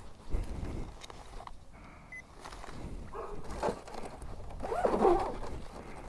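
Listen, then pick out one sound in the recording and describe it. A zipper rasps open and shut on a bag.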